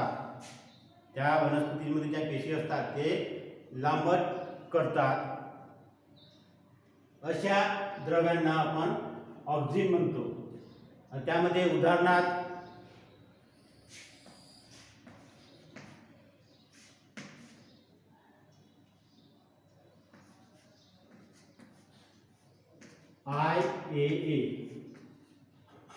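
A man lectures nearby, speaking clearly with animation.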